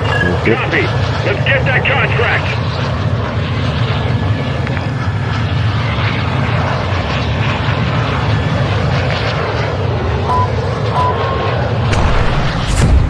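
The jet engines of a large cargo plane drone steadily and loudly.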